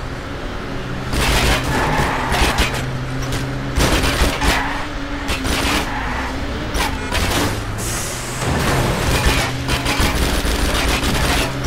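A car engine roars at full throttle.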